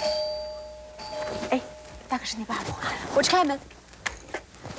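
Young women talk with each other indoors.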